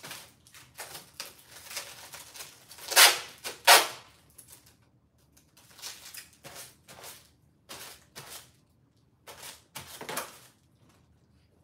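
Clothes rustle and crinkle as they are handled close by.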